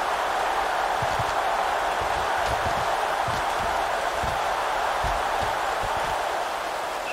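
Football players thud as they collide and tackle.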